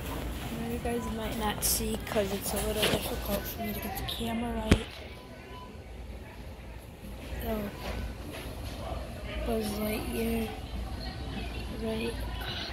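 A boy talks close to a phone's microphone.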